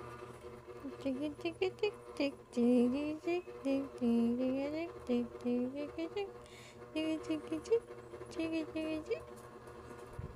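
A baby coos and babbles in sing-song sounds close by.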